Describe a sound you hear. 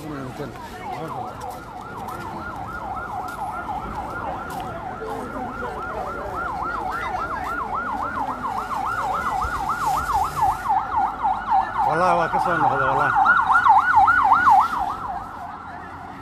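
A siren wails in a fast, rising and falling warble.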